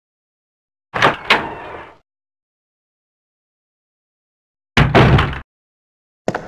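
A heavy wooden door creaks open and thuds.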